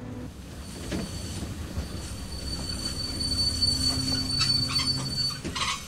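Train wheels clatter on rails.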